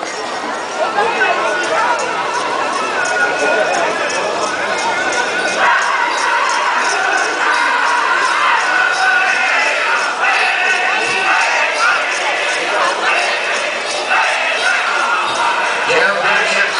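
Bells on a dancer's costume jingle in a steady rhythm.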